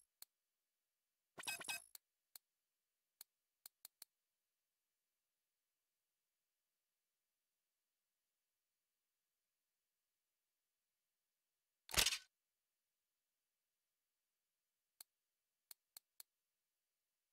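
Short electronic menu clicks and blips sound now and then.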